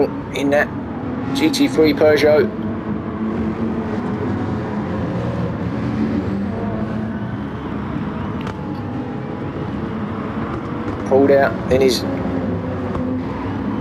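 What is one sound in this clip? Race car engines roar steadily as cars speed around a track.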